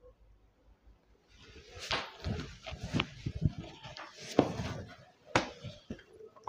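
Silk fabric rustles as it is folded.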